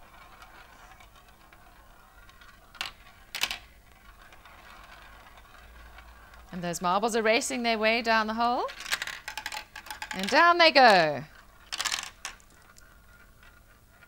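A marble rolls and rattles around a plastic marble run.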